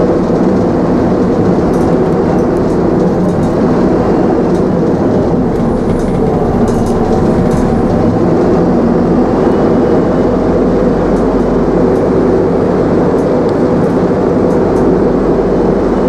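Loose fittings rattle and click inside a moving bus.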